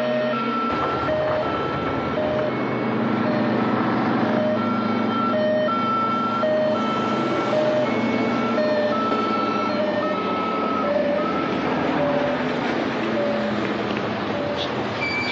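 A two-tone siren wails steadily on a van.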